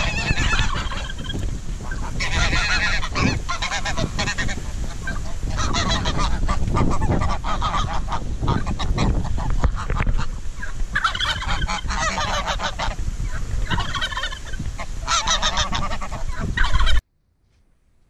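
Geese honk and cackle close by.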